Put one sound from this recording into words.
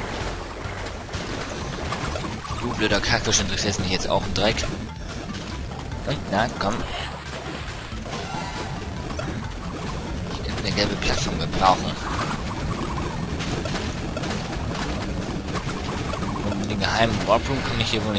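Upbeat video game music plays steadily.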